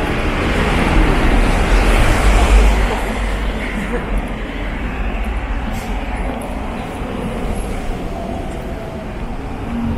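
A van drives past on the road nearby.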